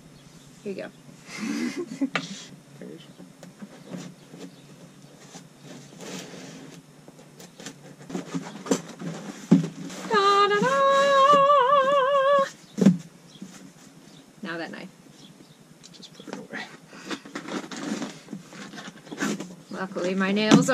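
A young woman talks and laughs up close.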